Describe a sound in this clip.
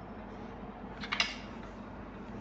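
A plastic ruler is lifted and knocks softly against paper.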